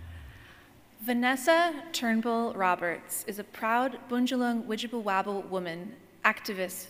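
A woman speaks calmly into a microphone over loudspeakers in a large hall.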